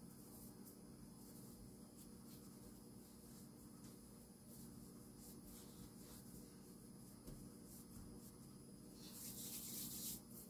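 Hands knead soft dough on a mat.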